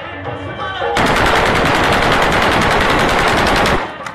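A rifle fires a rapid, sustained burst of shots close by.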